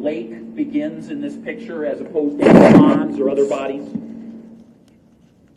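A man speaks in a room with a slight echo.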